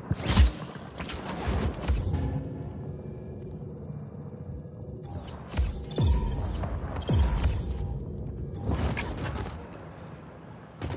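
Wind rushes loudly past a gliding wingsuit flier.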